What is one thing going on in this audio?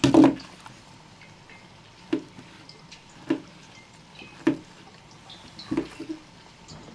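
A knife chops through a soft banana onto a wooden board with sharp knocks.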